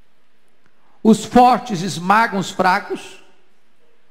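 A man speaks with emphasis into a microphone, heard through loudspeakers.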